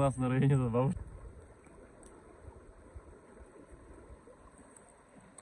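A river flows gently.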